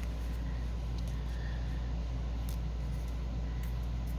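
Paper rustles softly as hands handle small cut pieces.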